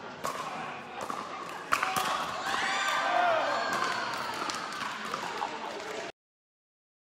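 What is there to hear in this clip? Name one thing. Paddles pop sharply against a plastic ball in a large echoing hall.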